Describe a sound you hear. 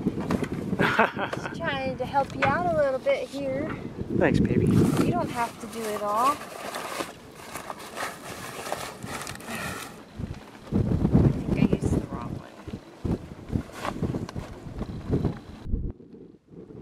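Sailcloth rustles and flaps as it is handled.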